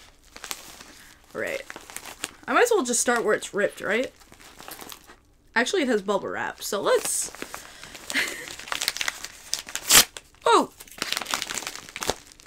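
A padded paper envelope crinkles and rustles in hands.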